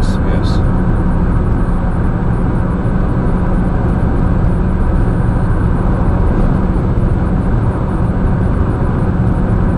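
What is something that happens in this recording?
A car's engine hums steadily with road noise from inside the cabin.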